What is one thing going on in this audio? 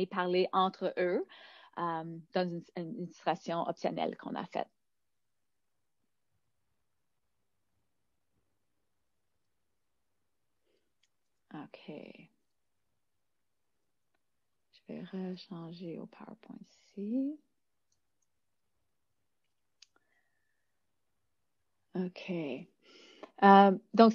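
A woman speaks calmly into a microphone, in short bursts with pauses.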